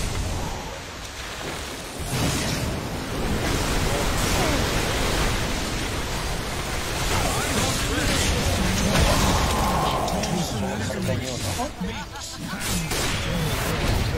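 Video game spells blast and crackle rapidly.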